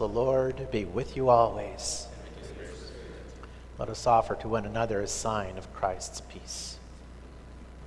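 A man chants through a microphone in an echoing hall.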